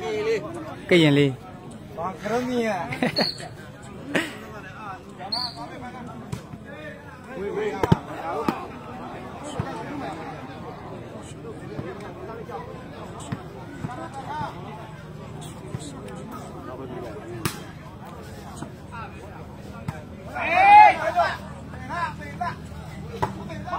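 A ball thuds against a player's foot.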